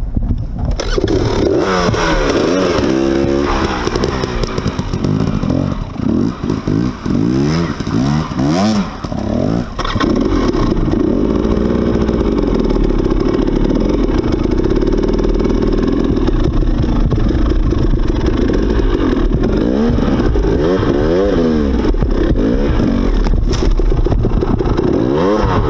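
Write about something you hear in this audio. A motorbike engine revs up and down close by.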